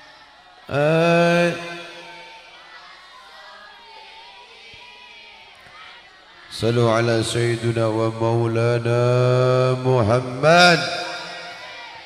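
An elderly man chants loudly through a microphone, echoing over a loudspeaker.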